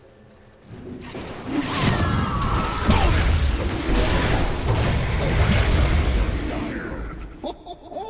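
Magic spells blast and crackle in a loud fight.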